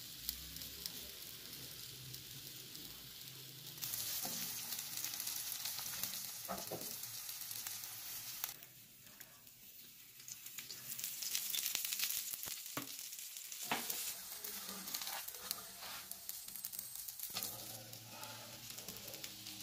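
A flatbread sizzles in oil on a flat iron griddle.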